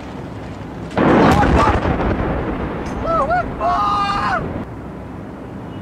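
A large explosion booms in the distance and rumbles away.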